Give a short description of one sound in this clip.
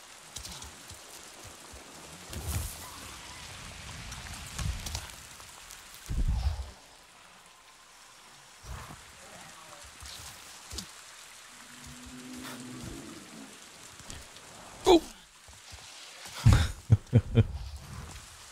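A man speaks casually through a microphone.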